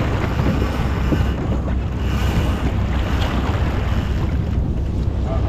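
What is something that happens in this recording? Water rushes along a sailboat's hull.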